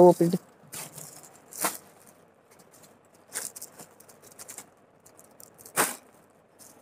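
Plastic wrapping crinkles and rustles in short bursts.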